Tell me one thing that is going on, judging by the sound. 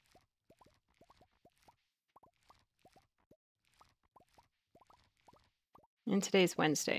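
Quick rising popping blips sound again and again as beans are picked up.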